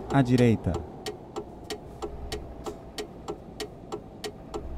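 A turn signal ticks evenly.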